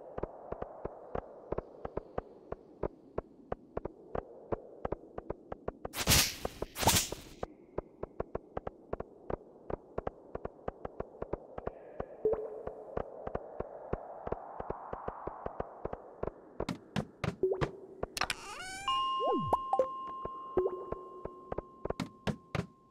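Quick, light footsteps patter steadily along a hard floor.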